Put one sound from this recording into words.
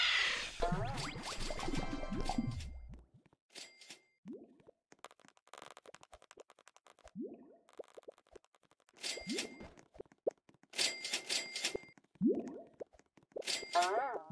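Short electronic chimes and rising blips ring out as items are picked up.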